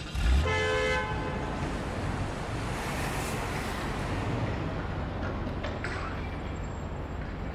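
A car engine hums as an SUV rolls slowly forward and turns.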